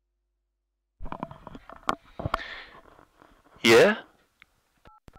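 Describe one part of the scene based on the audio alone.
A telephone handset is lifted off its cradle with a clatter.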